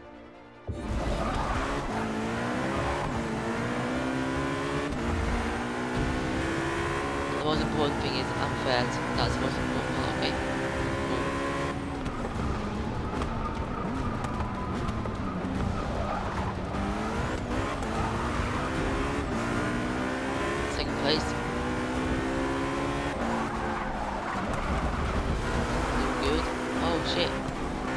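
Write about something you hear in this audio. A racing car engine roars, rising in pitch through the gears and dropping as it slows for corners.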